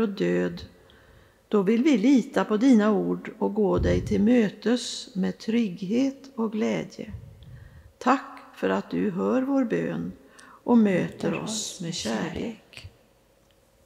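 An elderly woman speaks calmly into a microphone in a large echoing hall.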